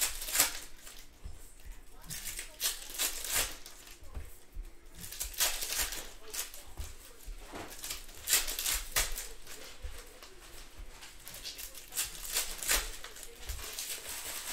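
Trading cards rustle and slap as they are shuffled.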